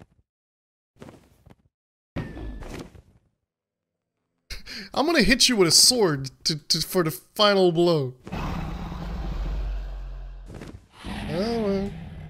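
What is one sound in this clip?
A large dragon flaps its wings overhead.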